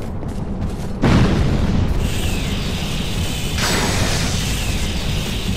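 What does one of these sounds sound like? Lightning bolts crackle and burst loudly.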